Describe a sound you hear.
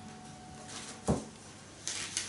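A book thuds softly onto a wooden floor.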